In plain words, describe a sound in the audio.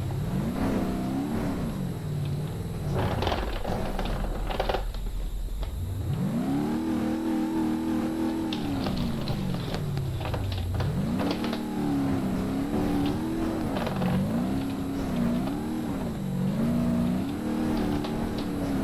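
A car engine revs up and down as it races along.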